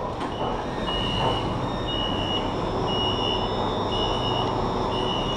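Train doors chime with a repeating beep.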